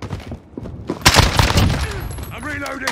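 A rifle fires a rapid burst of shots at close range.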